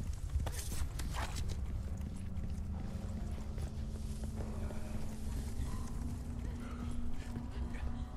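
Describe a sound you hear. Footsteps run over wet cobblestones.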